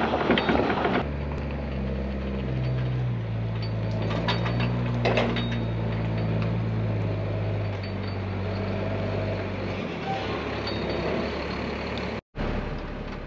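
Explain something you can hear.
A dump truck's engine rumbles steadily as it backs up slowly.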